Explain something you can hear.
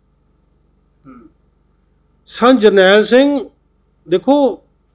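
An elderly man speaks slowly and emotionally into a close microphone.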